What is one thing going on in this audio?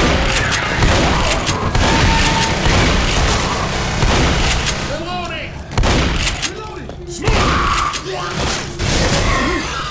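Shotgun blasts go off in quick succession.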